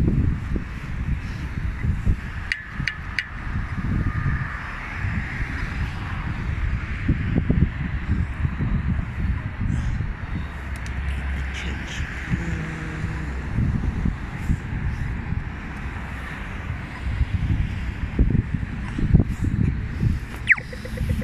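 Wind rumbles outdoors against the microphone.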